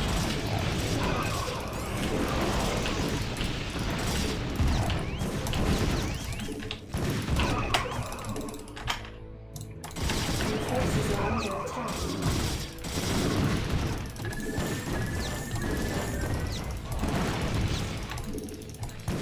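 Gunfire and explosions crackle in a video game battle.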